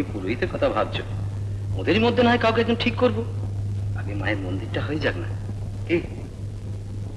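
A man speaks through an old film soundtrack.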